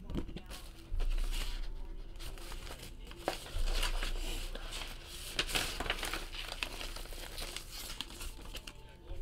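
A paper envelope rustles as hands open it.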